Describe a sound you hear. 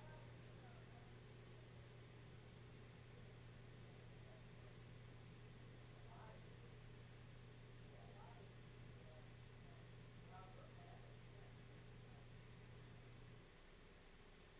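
A low electrical hum drones steadily from powered equipment, then drops away.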